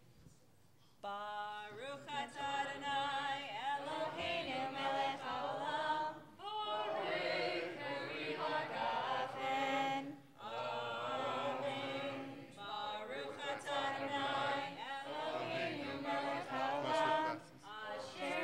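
A group of people sings together, echoing in a large hall.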